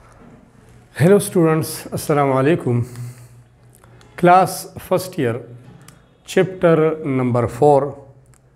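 A middle-aged man speaks calmly and clearly into a clip-on microphone.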